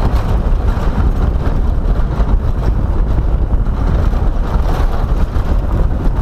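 A car engine rumbles as it drives slowly.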